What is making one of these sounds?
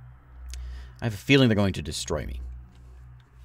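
A man speaks briefly and casually into a close microphone.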